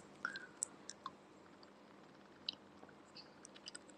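A young woman sips a drink through a straw.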